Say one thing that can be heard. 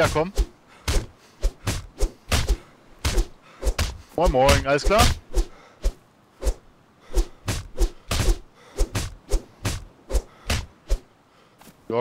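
Fists thud repeatedly against a body.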